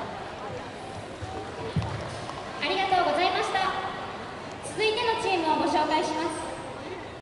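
A crowd murmurs in a large, echoing hall.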